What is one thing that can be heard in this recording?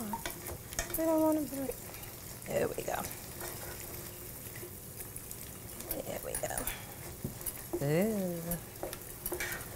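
A whisk clinks against a glass bowl.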